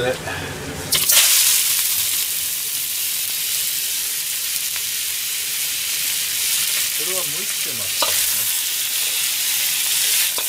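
Vegetables hiss and sizzle loudly in a hot wok.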